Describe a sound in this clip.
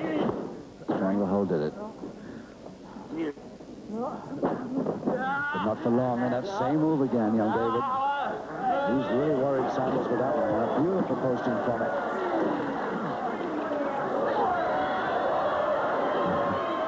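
A crowd cheers and murmurs in a large hall.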